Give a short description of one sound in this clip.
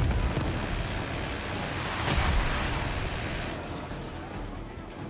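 A helicopter rotor thuds steadily.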